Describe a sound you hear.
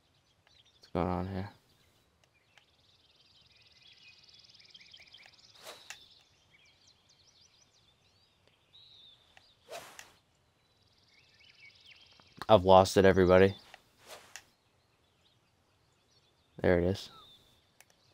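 A young man speaks in short, lively bursts close to a microphone.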